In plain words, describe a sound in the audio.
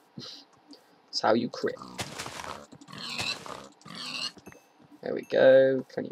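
A pig squeals as it is struck.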